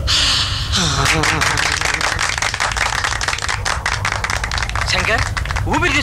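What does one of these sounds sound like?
A man claps his hands rapidly.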